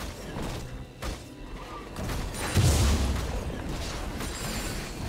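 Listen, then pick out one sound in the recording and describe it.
Game fighting effects boom, crackle and whoosh in quick bursts.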